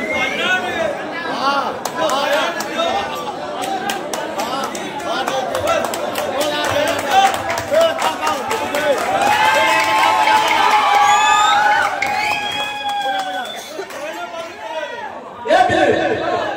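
Men sing loudly together in a lively chant.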